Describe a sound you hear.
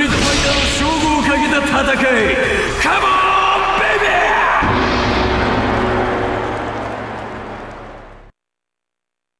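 A man shouts aggressively at close range.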